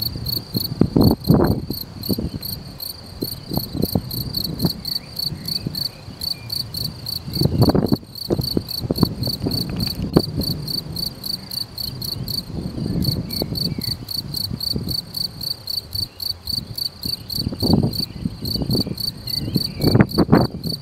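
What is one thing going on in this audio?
A field cricket chirps in rapid, even pulses.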